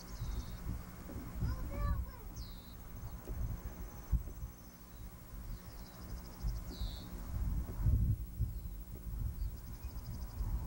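Wind buffets the microphone outdoors in low, uneven gusts.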